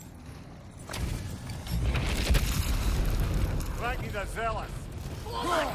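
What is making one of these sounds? Rocks crash and rumble loudly.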